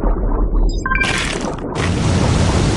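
A video game shark crunches loudly as it bites.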